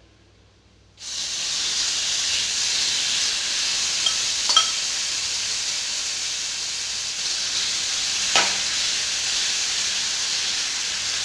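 Meat sizzles loudly in hot oil.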